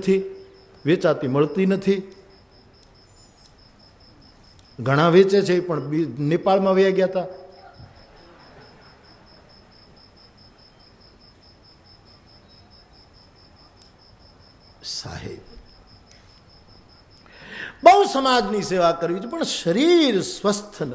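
An elderly man speaks with animation into a microphone, with long pauses.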